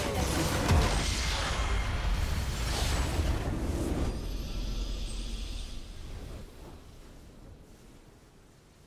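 A victory fanfare swells and fades away.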